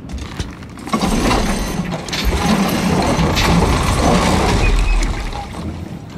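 A wooden handle scrapes and creaks as it is pulled from a winch.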